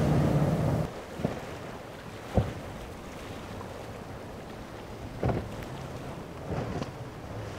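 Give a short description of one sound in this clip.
Water rushes and splashes around a speeding boat.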